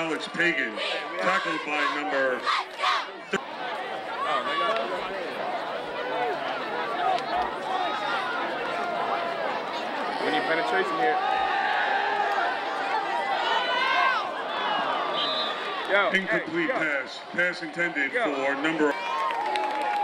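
Men shout loudly nearby.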